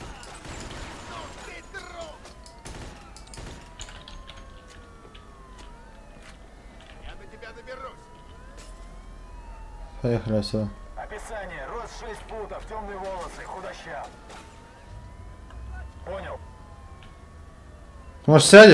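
A police siren wails in the distance.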